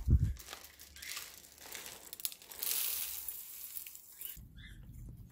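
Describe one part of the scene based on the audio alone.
Seed mix pours from a jar into a metal bowl.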